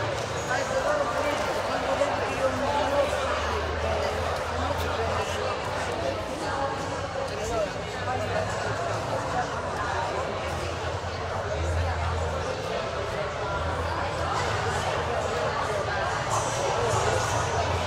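The music echoes around a large hall.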